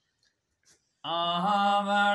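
A man chants loudly in a sustained, melodic voice nearby.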